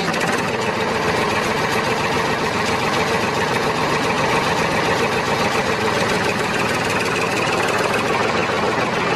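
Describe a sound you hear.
A small toy tractor motor whirs steadily.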